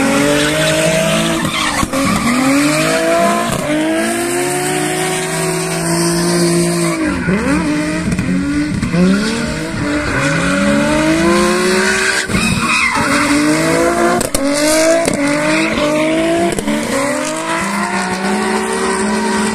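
Tyres squeal and screech on the tarmac.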